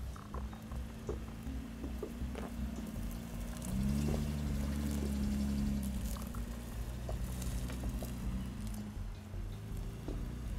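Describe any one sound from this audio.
Tyres crunch over dry brush and stones.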